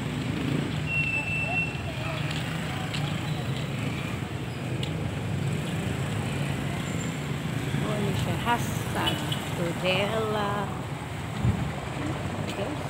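A steady low hum of a town street carries on outdoors.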